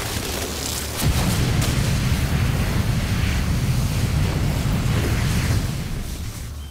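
A fiery explosion roars and rumbles.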